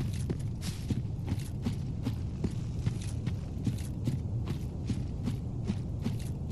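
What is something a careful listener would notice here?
Heavy footsteps run quickly over rough ground.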